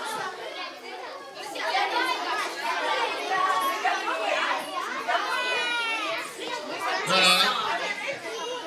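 A woman speaks to the children.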